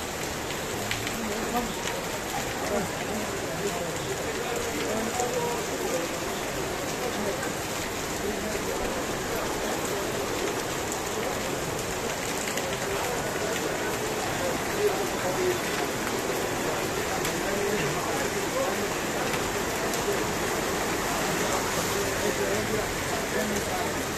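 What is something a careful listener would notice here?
Heavy rain pours down and splashes on hard pavement outdoors.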